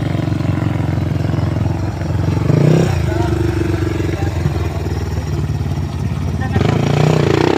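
A dirt bike engine idles nearby with a steady rumble.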